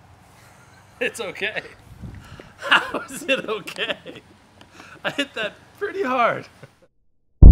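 A young man laughs and talks with excitement.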